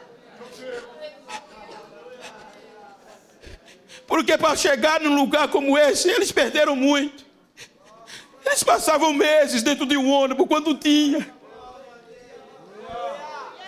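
An elderly man preaches loudly and with fervour through a microphone in a large echoing hall.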